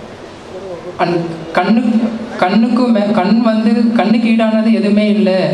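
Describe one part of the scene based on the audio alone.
A young man speaks calmly into a microphone over a loudspeaker.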